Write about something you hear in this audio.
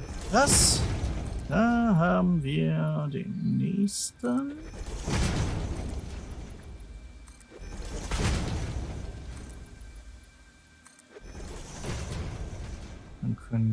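A game building piece snaps into place with a sparkling whoosh.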